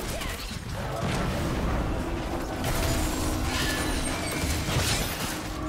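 Magic blasts and weapon hits crackle and thud in a hectic battle.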